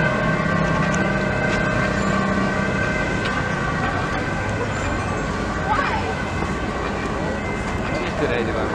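An ambulance siren wails.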